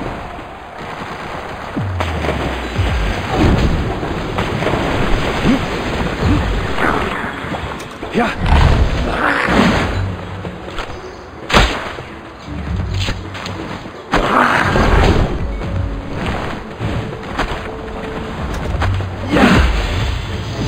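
A sharp magical blast crackles and bursts.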